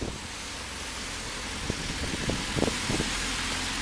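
A small truck drives past close by.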